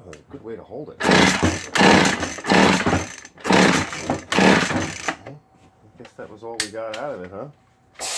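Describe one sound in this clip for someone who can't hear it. A chainsaw's starter cord is pulled hard several times.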